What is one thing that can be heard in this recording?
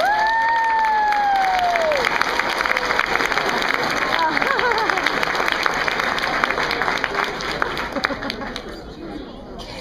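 Many hands clap rapidly in a lively burst of applause.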